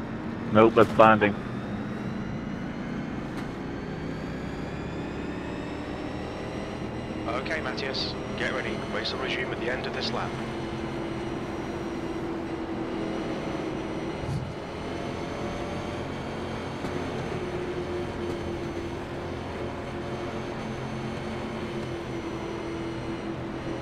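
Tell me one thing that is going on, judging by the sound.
A race car engine drones steadily, its pitch rising and falling with the throttle.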